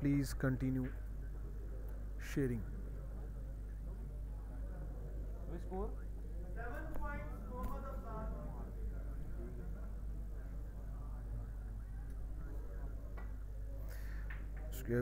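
A snooker cue strikes a ball with a sharp click.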